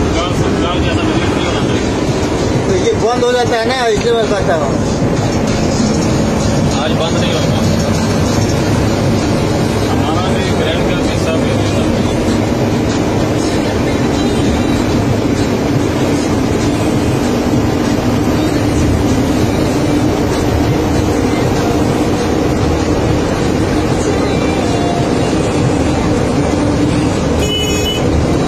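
Wind roars past the cab as the truck drives along a highway.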